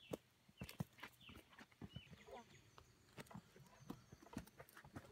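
Footsteps crunch on a dry dirt trail.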